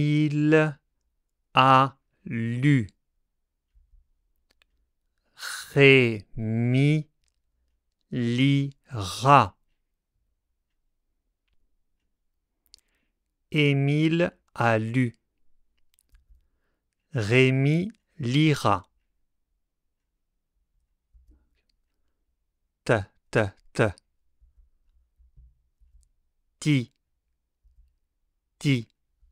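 A man speaks slowly and clearly into a close microphone, in short separate phrases.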